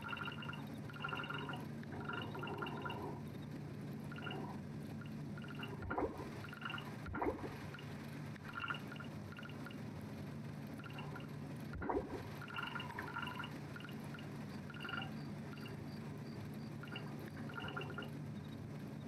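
Soft game interface blips sound as items are moved.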